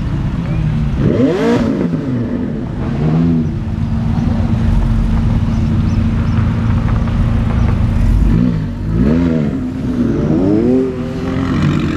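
A sports car engine revs loudly in sharp bursts.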